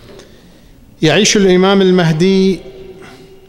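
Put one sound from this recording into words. A middle-aged man chants loudly over a microphone.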